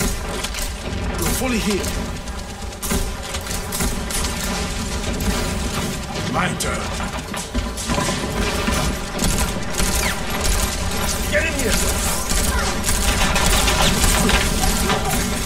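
A heavy gun fires bursts of shots.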